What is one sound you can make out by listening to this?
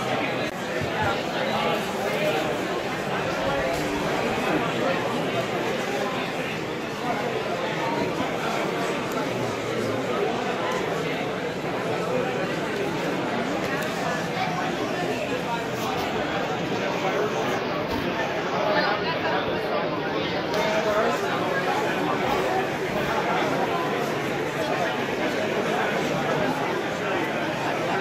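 A crowd of people chatter in a large indoor hall.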